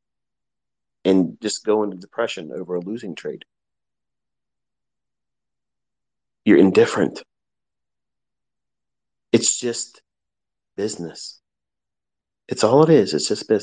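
A man speaks in short bursts into a microphone, with pauses in between.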